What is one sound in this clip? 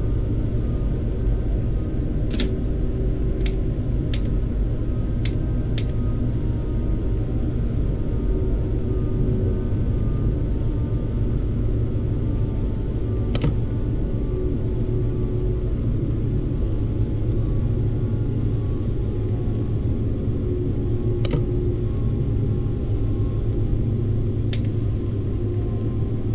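A train engine hums with a steady low rumble.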